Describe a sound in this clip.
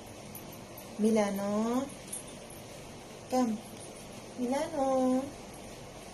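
A small dog whines in short rising and falling cries.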